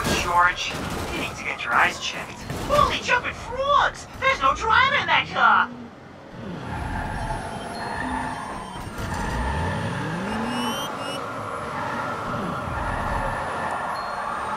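A car engine roars and revs as it drives.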